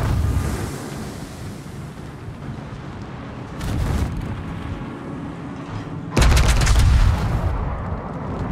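Heavy naval guns boom in loud volleys.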